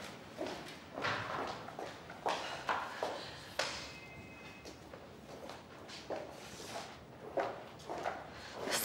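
A young woman speaks tensely.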